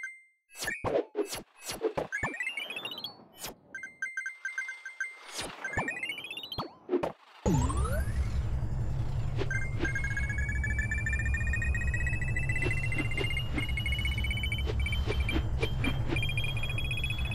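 Coins chime as a game character collects them.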